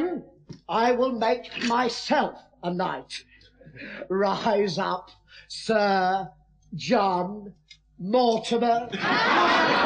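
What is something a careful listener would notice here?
A man shouts and laughs loudly.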